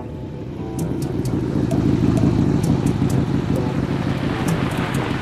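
A motorcycle engine rumbles steadily nearby.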